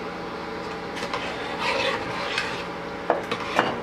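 A metal ladle stirs and scrapes inside a pot.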